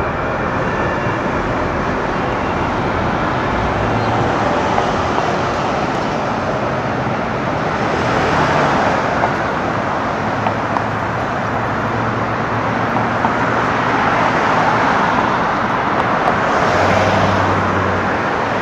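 Cars pass by close with a rushing whoosh.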